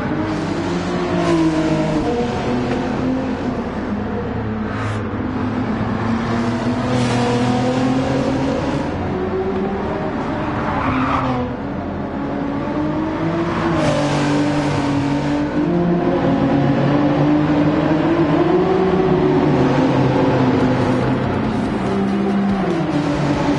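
Racing car engines roar and rev, shifting pitch up and down.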